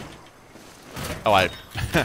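A heavy plastic crate clunks as it is lifted and set down.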